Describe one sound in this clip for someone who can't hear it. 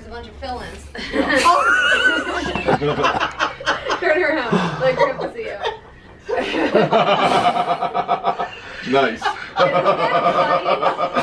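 Women laugh loudly and heartily close by.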